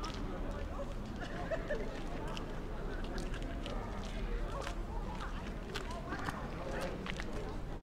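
Several men and women chatter in the open air.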